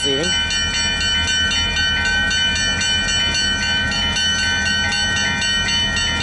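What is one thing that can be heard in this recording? A railway crossing bell rings loudly and rapidly.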